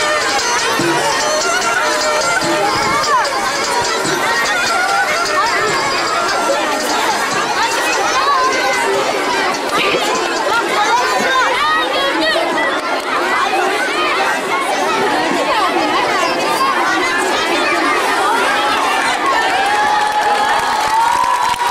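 A crowd of children chatters loudly outdoors.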